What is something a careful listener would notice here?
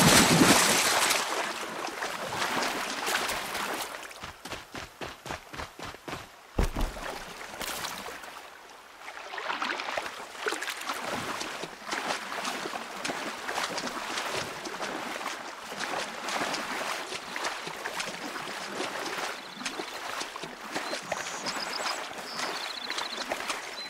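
Water splashes and swirls as a swimmer paddles steadily.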